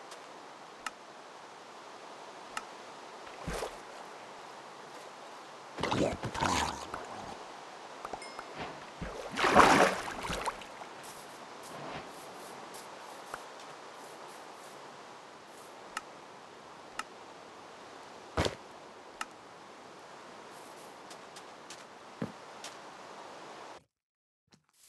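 Rain falls steadily.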